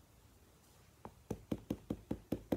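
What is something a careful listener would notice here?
A stamp taps repeatedly on an ink pad.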